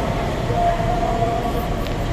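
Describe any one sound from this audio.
A train rolls along the tracks.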